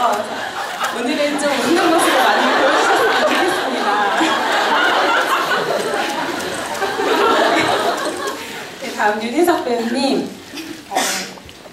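A man speaks through a microphone over loudspeakers in an echoing hall.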